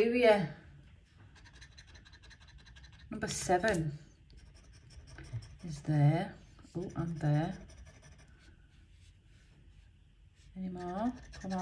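A coin scrapes across a scratch card in short, soft strokes.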